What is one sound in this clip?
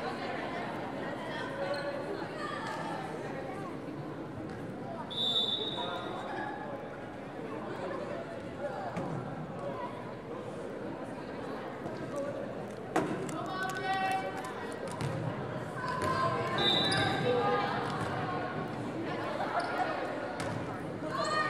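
Young players and spectators call out and chatter in a large echoing gym.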